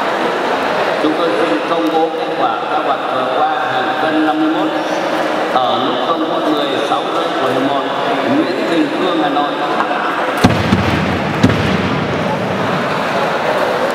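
Voices of men call out from the crowd.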